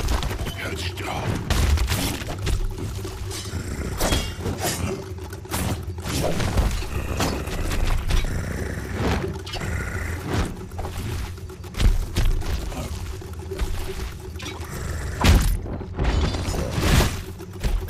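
Weapons clash and strike in a fight, with sharp repeated hits.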